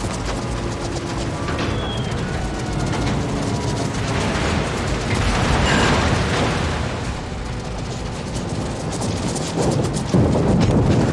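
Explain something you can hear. Anti-aircraft guns fire in rapid bursts.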